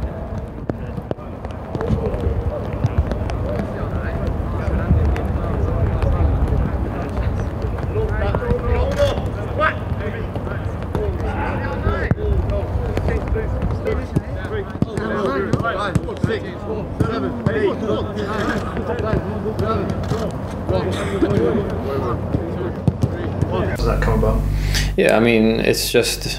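Men's voices talk and call out at a distance outdoors.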